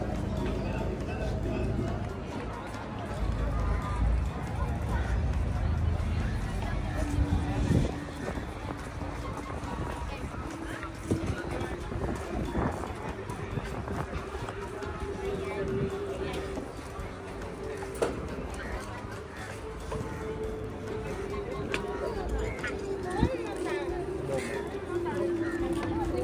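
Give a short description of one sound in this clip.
Men and women chat nearby, outdoors among passersby.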